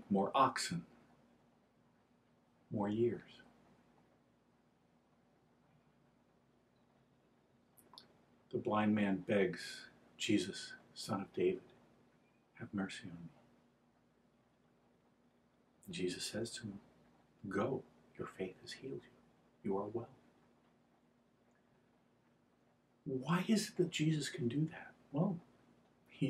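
An elderly man speaks calmly and slowly, close by, with long pauses.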